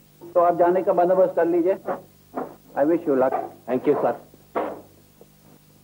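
A man speaks loudly and forcefully.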